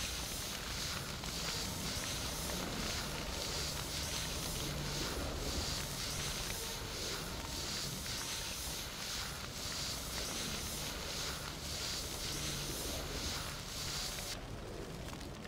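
An extinguisher sprays with a steady hiss.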